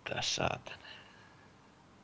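A young man speaks briefly and loudly into a nearby microphone.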